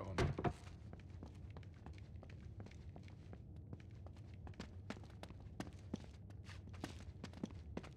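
Footsteps run across a stone floor in a large echoing hall.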